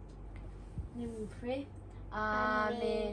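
A young girl speaks and squeals close by.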